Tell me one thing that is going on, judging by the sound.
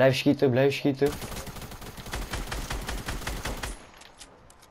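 Gunshots fire in quick succession.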